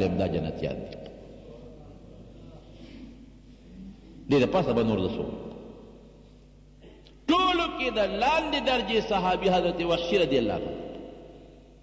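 An elderly man speaks with animation through a microphone, his voice echoing.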